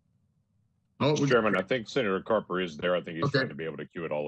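An older man talks over an online call.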